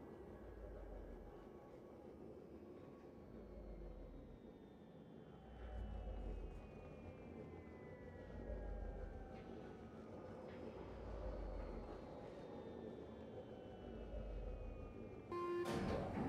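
Heavy footsteps thud slowly on a metal floor.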